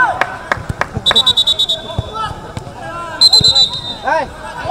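A referee blows short sharp blasts on a whistle.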